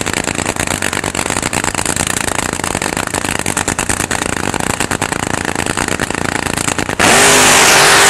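A race car engine idles with a loud, rapid crackling rumble.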